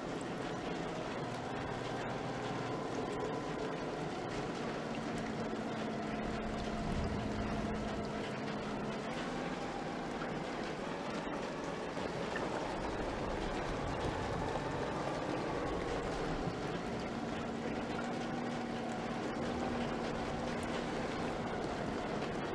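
Rain patters steadily on a windscreen.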